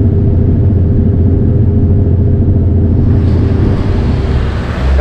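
A truck passes close by on the road.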